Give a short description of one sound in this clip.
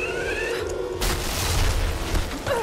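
A heavy landing thuds onto the ground.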